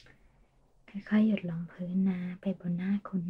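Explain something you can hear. A young woman speaks softly, close to the microphone.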